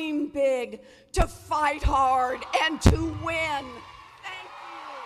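A middle-aged woman speaks forcefully through a microphone in a large echoing hall.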